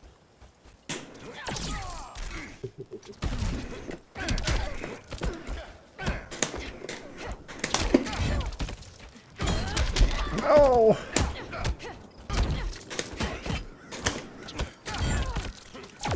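Punches and kicks thud and crack.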